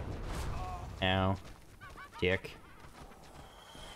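A sword slashes and strikes with a sharp hit.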